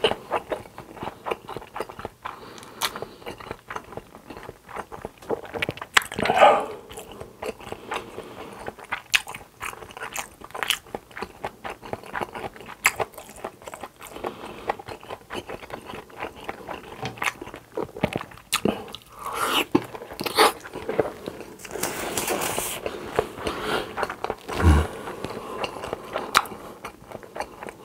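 A young man chews food wetly and noisily close to a microphone.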